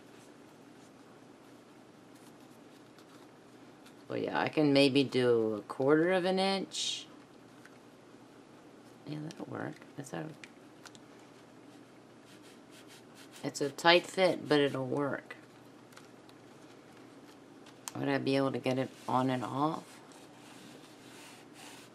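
Stiff paper rustles and crinkles as hands fold it.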